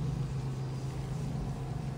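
A small fire crackles softly.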